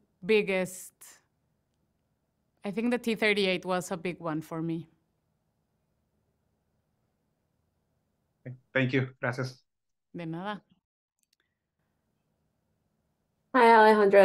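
Women talk with animation over an online call, with pauses between turns.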